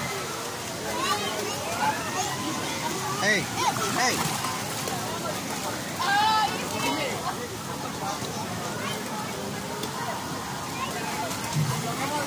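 Water splashes.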